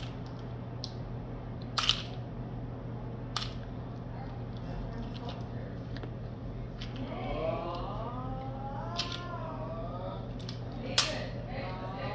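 A boy crunches on a crisp snack close by.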